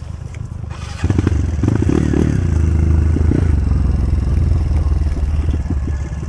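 A dirt bike engine revs hard and loud, its pitch rising and falling.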